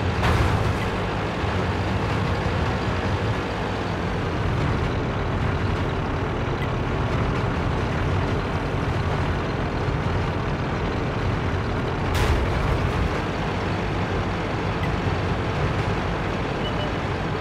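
A tank engine rumbles steadily as the tank drives along.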